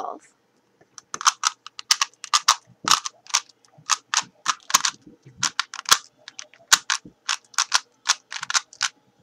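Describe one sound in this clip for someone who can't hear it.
A puzzle cube clicks and clatters as its layers are turned quickly.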